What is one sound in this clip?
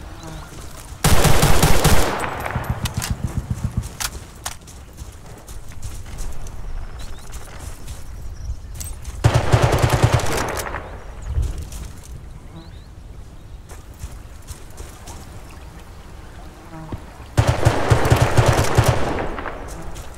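A rifle fires short, rapid bursts at close range.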